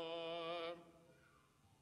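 A young man holds a long sung note through a microphone, then stops.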